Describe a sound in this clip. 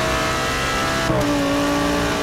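A racing car engine drops in pitch as a gear shifts up.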